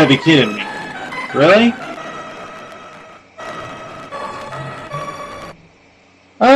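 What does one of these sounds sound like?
Soft video game music plays.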